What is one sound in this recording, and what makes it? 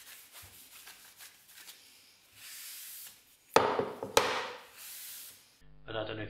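A cloth rubs across a stone surface.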